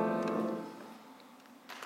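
A young man sings a held note that ends.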